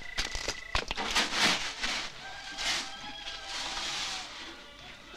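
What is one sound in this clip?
Grain pours and rustles from a tin.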